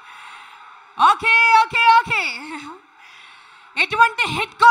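A woman sings into a microphone, heard through loudspeakers in a large hall.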